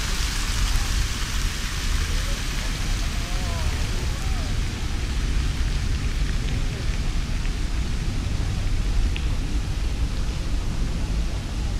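Wind buffets the microphone outdoors.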